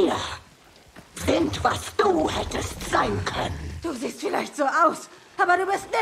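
A woman speaks slowly and menacingly.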